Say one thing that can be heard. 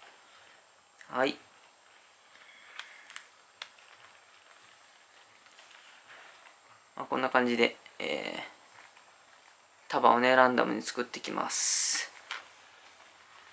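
A young man speaks briefly in short bursts, close by.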